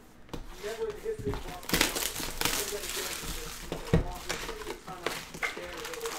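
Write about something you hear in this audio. Plastic wrap crinkles and rustles as it is torn off a box.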